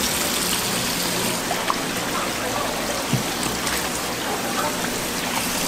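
Water runs steadily from a tap and splashes onto a hard surface.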